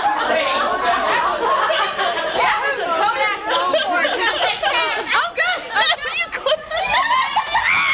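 An elderly woman laughs close by.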